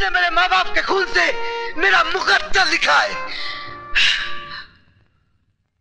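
A man shouts with animation, close by.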